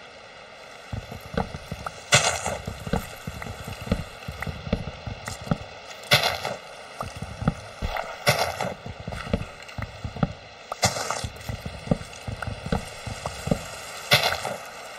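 An axe chops rapidly at wood and leaves.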